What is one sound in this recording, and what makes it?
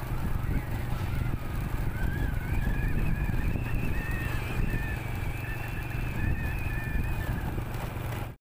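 Wind rumbles and buffets steadily outdoors.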